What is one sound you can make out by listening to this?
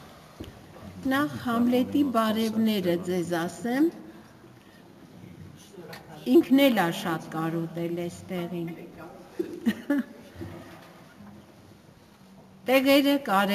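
An elderly woman speaks slowly and calmly into a microphone.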